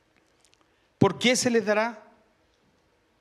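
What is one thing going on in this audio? A middle-aged man speaks a short phrase into a microphone.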